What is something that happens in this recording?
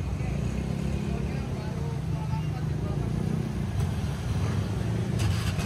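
Many motorbike engines idle and rumble nearby.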